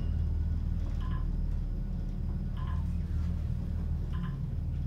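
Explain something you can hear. An elevator gives short soft beeps as it passes floors.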